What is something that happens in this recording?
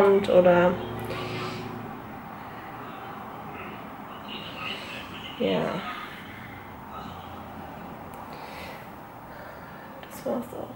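A young woman speaks quietly and briefly, close by.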